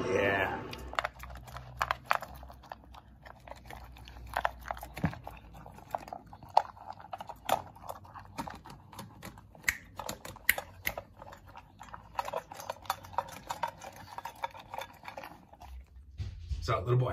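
A dog eats noisily from a metal bowl, crunching and licking.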